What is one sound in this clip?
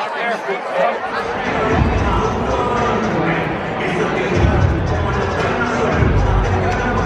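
A large crowd rumbles in a stadium.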